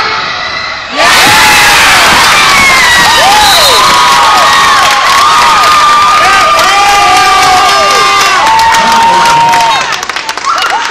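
A crowd cheers and screams loudly in an echoing gym.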